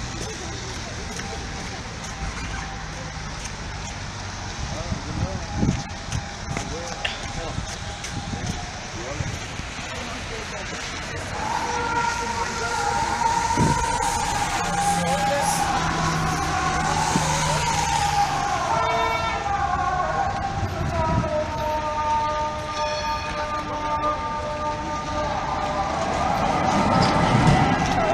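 Car traffic drives by on a wet, slushy street.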